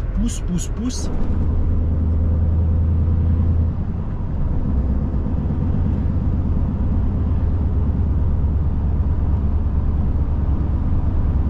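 Tyres roar on the road as the truck drives along.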